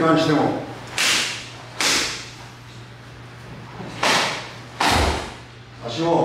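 Karate uniforms snap sharply with each quick block.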